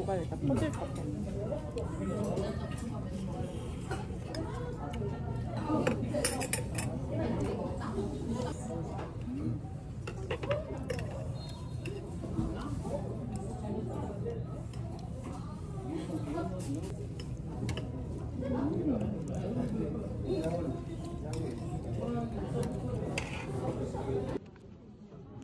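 A crowd of people chatter in a busy, noisy room.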